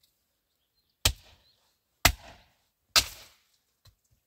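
A pick strikes hard stony ground in sharp blows.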